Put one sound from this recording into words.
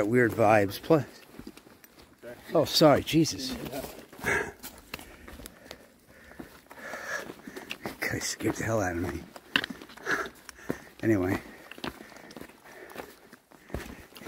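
Footsteps thud and crunch along a dirt trail.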